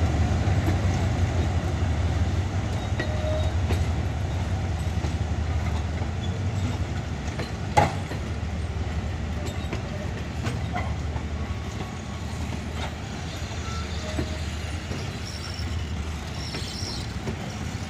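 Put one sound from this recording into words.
Passenger coach wheels clatter over rail joints.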